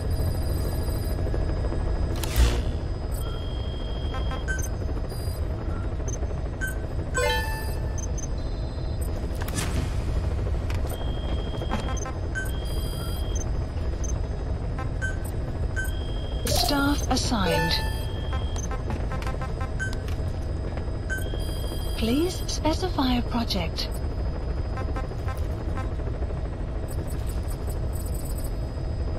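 A helicopter engine drones steadily from inside the cabin.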